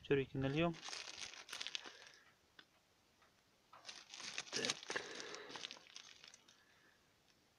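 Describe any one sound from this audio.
A plastic bag crinkles as it is handled.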